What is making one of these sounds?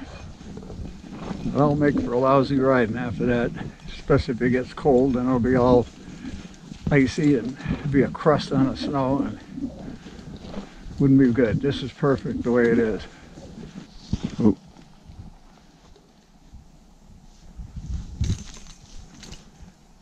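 A horse's hooves crunch softly through snow.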